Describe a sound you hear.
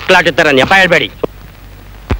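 A man speaks forcefully and loudly, close by.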